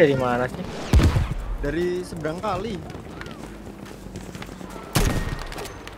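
Gunshots bang loudly in bursts.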